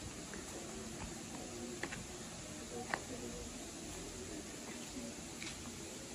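A small child's footsteps patter on stone paving.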